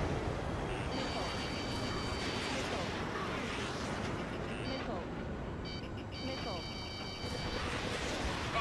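A warning alarm beeps rapidly.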